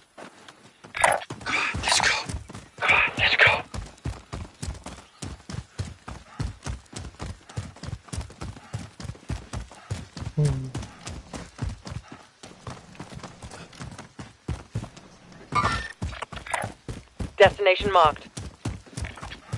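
Footsteps thud quickly and steadily on grass and dirt.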